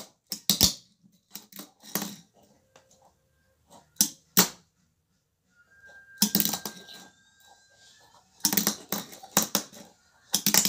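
A small toy taps and clatters on a wooden floor.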